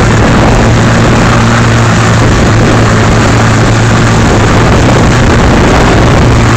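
A motorboat engine drones steadily close by.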